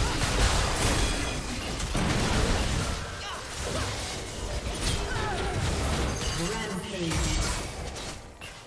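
Game spells crackle and blast in a busy battle.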